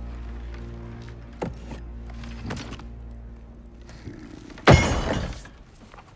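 Wooden pieces clack on a table.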